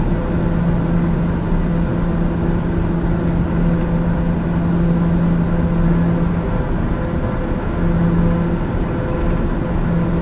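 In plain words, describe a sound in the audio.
A single-engine turboprop drones in cruise, heard from inside the cockpit.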